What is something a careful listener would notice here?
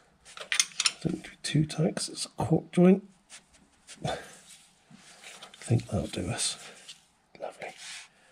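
A wrench clicks and scrapes against a metal bolt.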